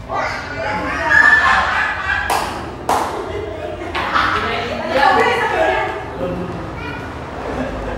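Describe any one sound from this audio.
A middle-aged woman laughs loudly.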